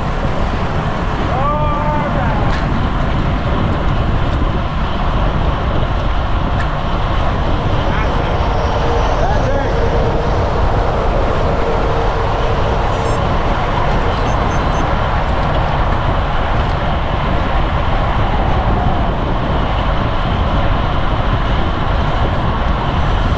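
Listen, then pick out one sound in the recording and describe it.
Wind roars steadily across the microphone outdoors.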